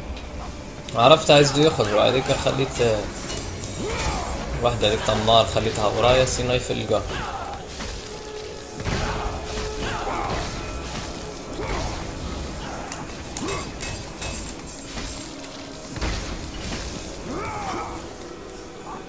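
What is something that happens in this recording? Chained blades swish and slash through the air.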